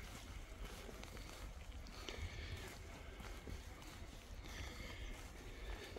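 Footsteps tread steadily on a wet paved path.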